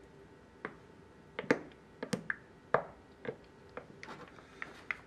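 A wooden spoon clinks against a glass mug while stirring.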